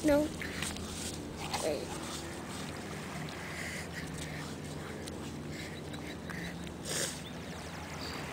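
Hands dig and scrape in wet sand close by.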